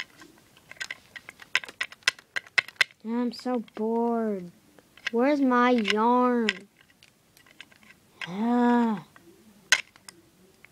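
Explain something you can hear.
A small plastic toy taps and clicks against a plastic toy bed.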